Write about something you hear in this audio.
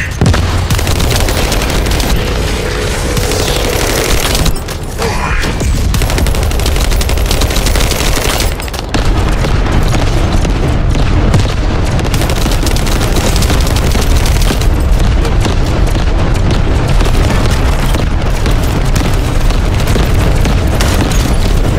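Rapid gunfire crackles and booms.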